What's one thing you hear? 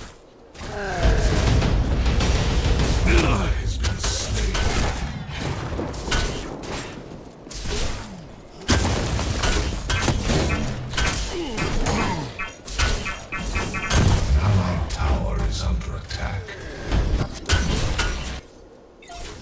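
Weapons fire in rapid bursts with crackling blasts.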